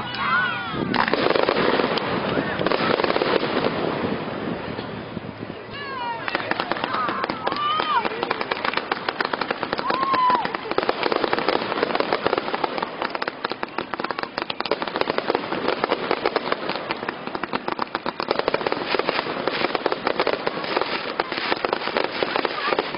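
Fireworks burst in the night sky.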